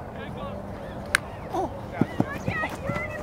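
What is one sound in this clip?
A ball smacks into a lacrosse stick.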